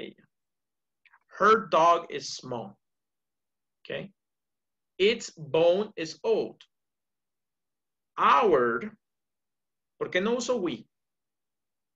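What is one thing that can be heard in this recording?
A man speaks calmly in short phrases with pauses, heard through an online call.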